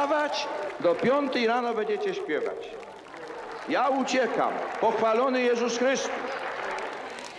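An elderly man sings slowly into a microphone.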